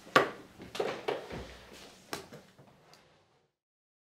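Objects knock and clatter on a wooden lectern.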